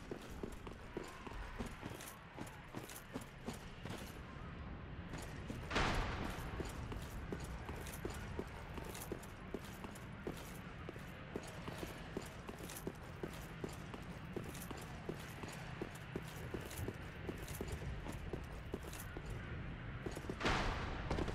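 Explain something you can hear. Armoured footsteps clank quickly on rough ground.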